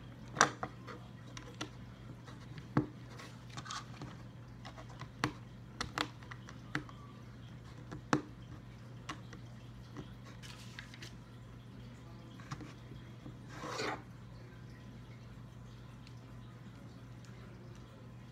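Plastic toy bricks click and snap together close by.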